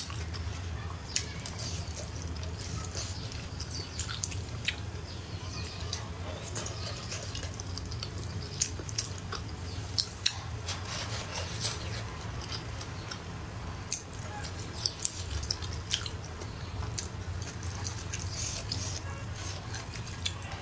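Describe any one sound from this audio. A young woman chews food noisily and slurps close to a microphone.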